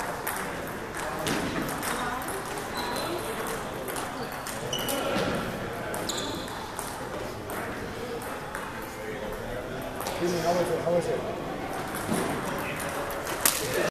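A crowd of young people chatters in a large echoing hall.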